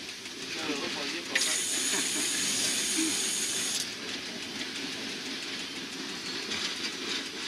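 A train rumbles and clatters slowly past on the tracks nearby.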